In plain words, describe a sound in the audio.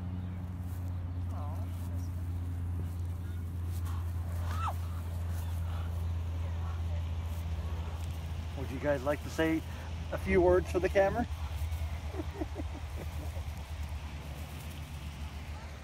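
Ducks peck and rustle in the grass close by.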